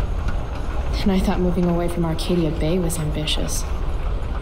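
A second young woman answers quietly.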